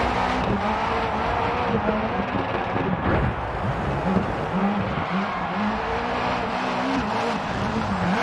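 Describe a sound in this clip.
A racing car engine revs hard and shifts gears.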